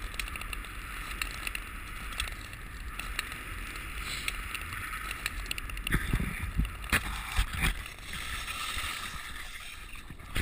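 Ice skates scrape and hiss across frozen ice.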